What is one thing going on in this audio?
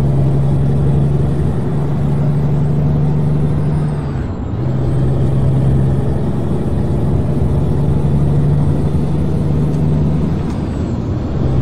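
A truck engine drones steadily, briefly dipping as the gears shift.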